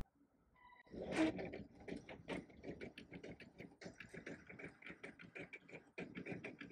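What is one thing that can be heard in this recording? A printer whirs and clatters as it feeds and prints a page.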